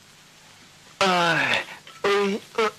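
A young man cries out loudly.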